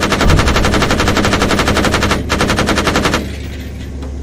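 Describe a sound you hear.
A heavy gun fires in a rapid burst.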